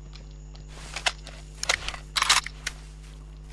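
A rifle bolt clacks as the gun is reloaded.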